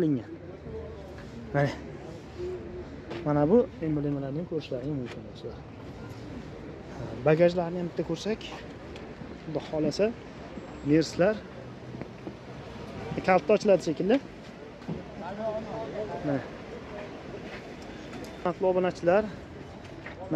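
A man talks close by with animation.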